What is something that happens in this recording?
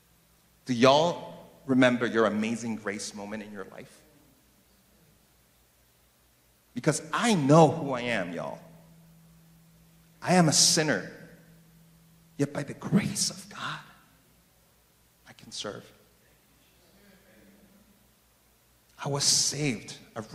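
A man speaks with animation into a microphone, heard through loudspeakers in a large echoing room.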